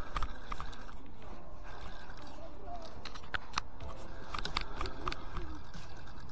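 A fishing reel whirs and clicks as its line is wound in.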